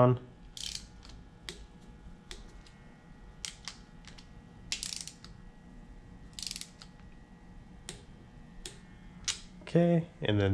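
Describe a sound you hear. A ratchet wrench clicks as a bolt is tightened.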